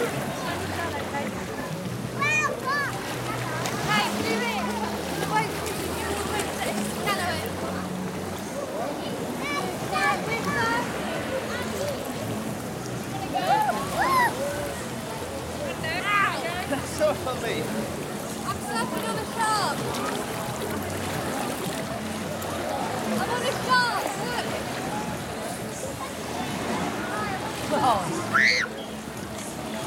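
Water splashes and laps around swimmers close by.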